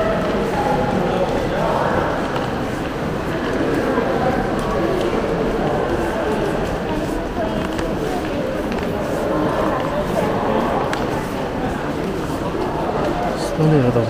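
Many people chatter in a large echoing hall.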